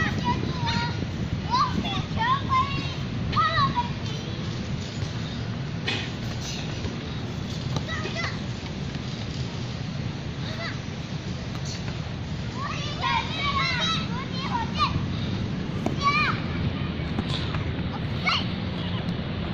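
Young children shout and call out excitedly outdoors.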